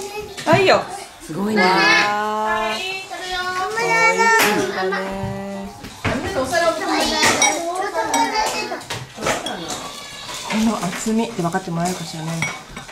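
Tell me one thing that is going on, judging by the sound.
A young girl talks with animation, close by.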